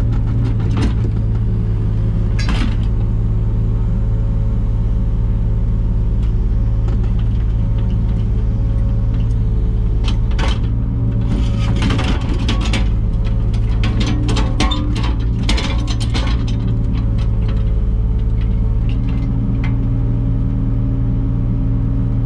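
A digger's hydraulics whine as the arm moves.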